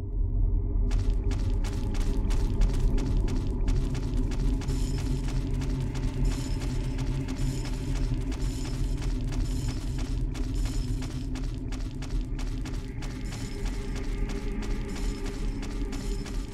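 Footsteps clank quickly on a metal walkway.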